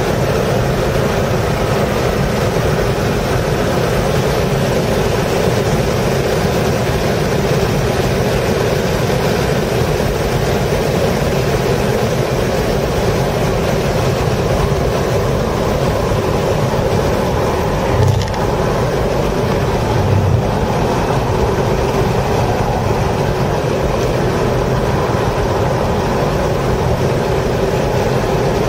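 Wind and road noise rush steadily around the car.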